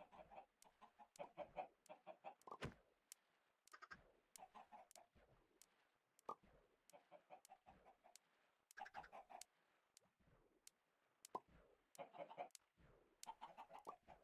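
Many game chickens cluck in quick, busy bursts.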